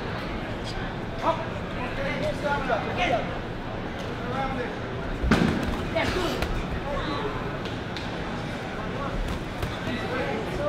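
A crowd of men and women murmurs and calls out nearby.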